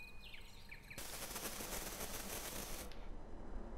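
A television hisses loudly with static.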